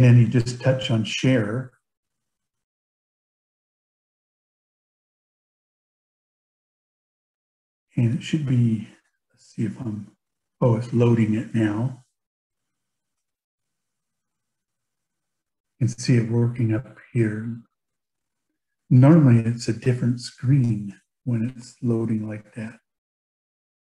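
A man speaks calmly into a microphone over an online call, in bursts with pauses.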